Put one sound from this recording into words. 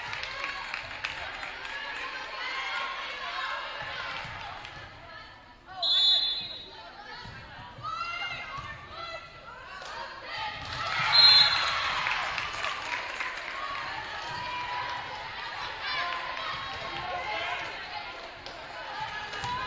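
A volleyball is struck with hard slaps.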